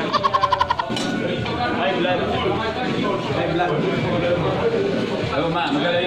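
A man laughs nearby.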